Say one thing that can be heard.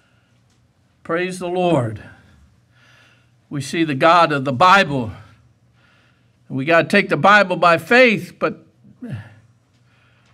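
An elderly man preaches forcefully into a microphone in short bursts, in a room with a slight echo.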